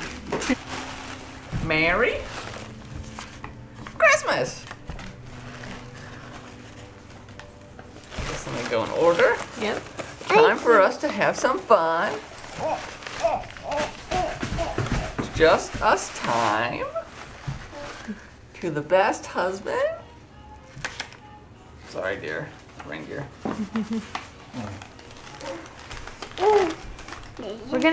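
Tissue paper rustles and crinkles close by.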